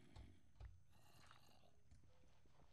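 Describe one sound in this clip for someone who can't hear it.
A block is placed with a soft gritty crunch.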